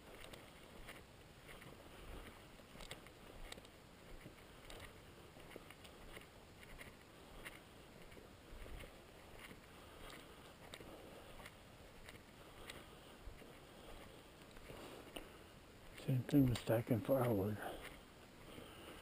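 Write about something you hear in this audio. Footsteps swish steadily through dry grass outdoors.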